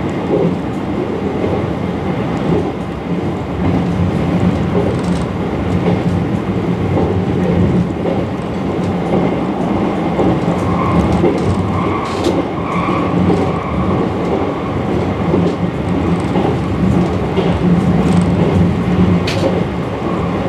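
A train carriage rumbles and rattles steadily along the tracks.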